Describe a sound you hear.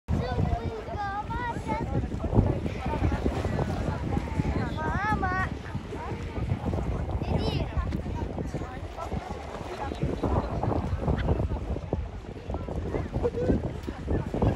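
Water laps and splashes around swimmers nearby.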